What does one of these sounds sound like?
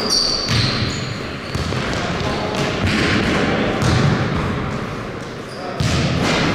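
Basketballs bounce on a hard floor in an echoing hall.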